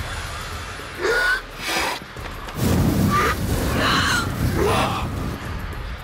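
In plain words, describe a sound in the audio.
A creature lets out high, piercing shrieks.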